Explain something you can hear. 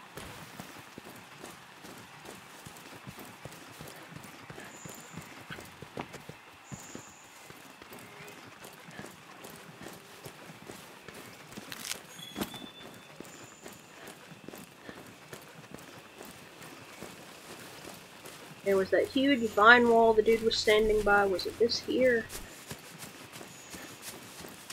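Footsteps run over soft forest ground.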